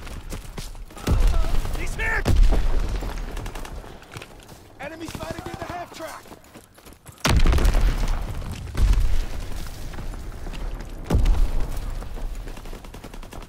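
Gunfire and explosions boom loudly in sudden bursts.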